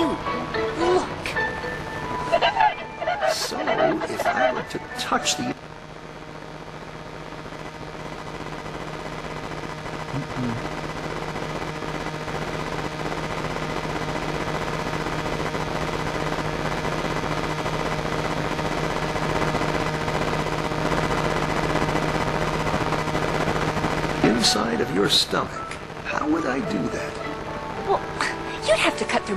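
Electronic game bleeps and chirps play in quick bursts.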